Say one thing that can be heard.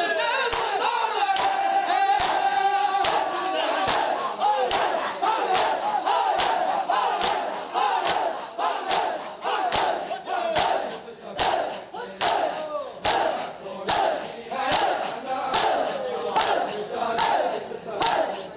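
Many men beat their chests in a steady rhythm with loud slaps.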